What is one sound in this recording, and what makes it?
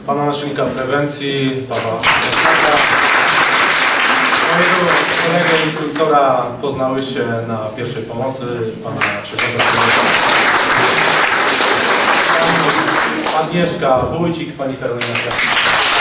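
A man speaks to a room through a slight echo.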